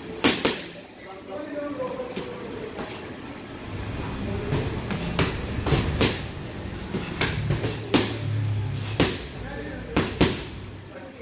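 Gloved punches smack sharply against pads in a room with some echo.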